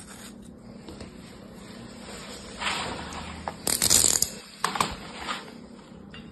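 Clumps of sand drop into a plastic tray with soft thuds.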